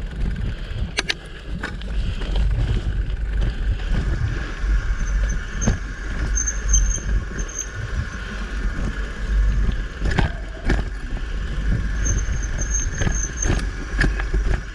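A bicycle rattles and knocks over bumps in the trail.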